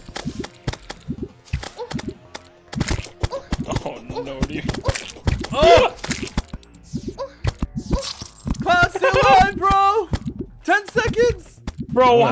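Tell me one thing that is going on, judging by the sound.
Video game creatures clash with quick thuds and hits.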